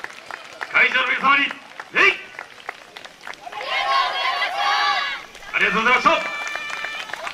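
A group of young women shout in unison outdoors.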